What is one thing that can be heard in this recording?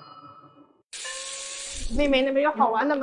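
Water runs from a tap onto hands.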